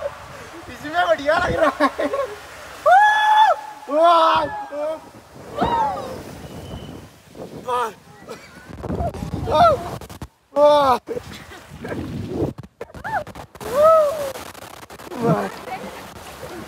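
A young woman screams with excitement close by.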